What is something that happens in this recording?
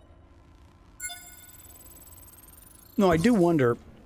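A shimmering electronic tone rises slowly.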